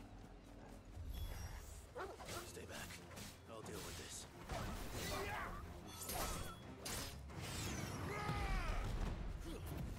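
Swords clash and slash in a game fight.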